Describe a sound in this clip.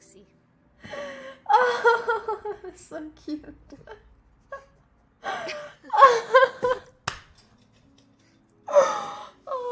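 A young woman laughs and giggles close to a microphone.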